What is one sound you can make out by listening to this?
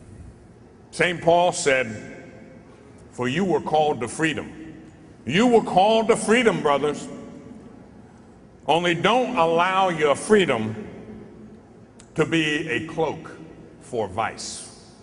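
A middle-aged man speaks slowly and deliberately through a microphone in a large hall.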